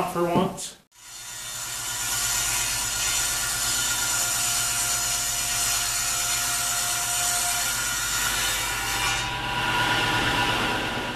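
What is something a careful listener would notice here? A table saw runs with a steady high whine.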